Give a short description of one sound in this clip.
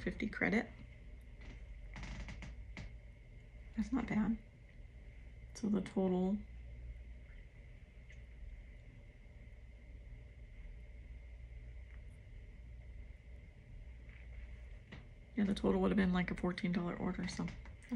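A middle-aged woman speaks close by in short bursts, with long pauses.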